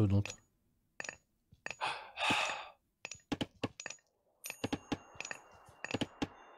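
Short clicks and soft chimes of a game interface sound repeatedly.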